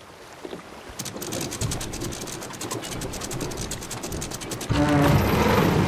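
A wooden capstan ratchets with rapid clicking.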